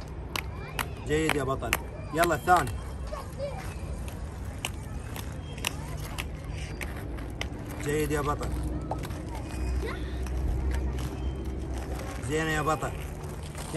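A child calls out nearby with high, lively shouts.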